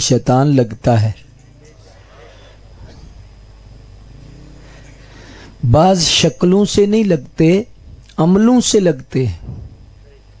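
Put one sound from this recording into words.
A man chants loudly through a microphone, in a large echoing space.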